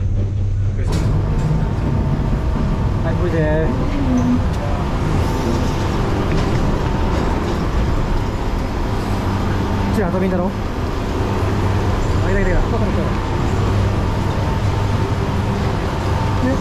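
Cableway machinery whirs and clatters loudly in an echoing station.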